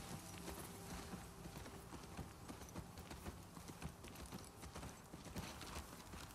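A horse's hooves thud slowly on grassy ground.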